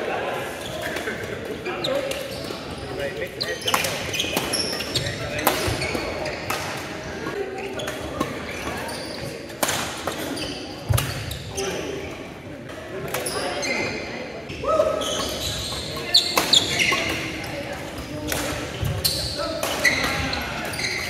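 Players call out and chatter in the hall.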